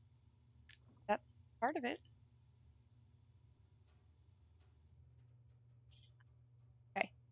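A young woman speaks briefly and quietly into a microphone.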